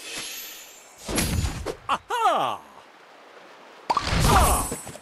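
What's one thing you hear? A bright game jingle chimes.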